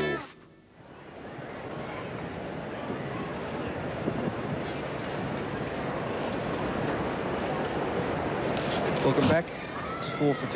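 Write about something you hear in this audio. A crowd murmurs steadily in an open-air stand.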